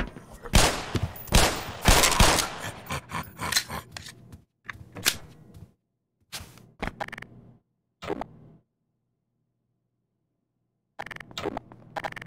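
A pistol fires loud shots in quick bursts.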